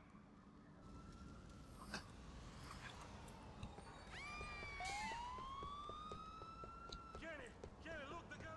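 A fire engine siren wails nearby.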